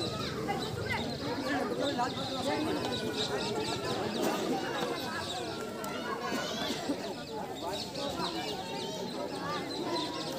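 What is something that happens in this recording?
A crowd of young men chatters and shouts outdoors.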